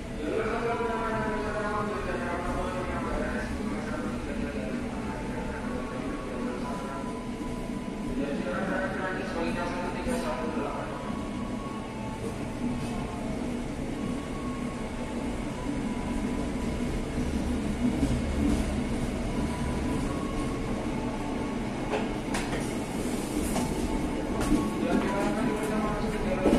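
A train rumbles steadily as it rolls out along the tracks.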